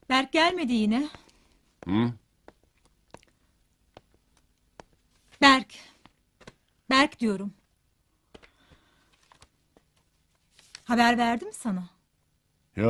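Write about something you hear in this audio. A woman talks in short bursts, close by.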